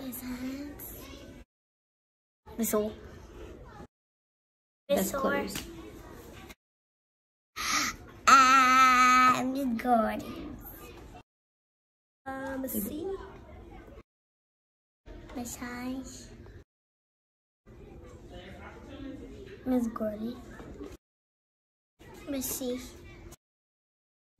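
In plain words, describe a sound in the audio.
Young children speak in short bursts, close to the microphone.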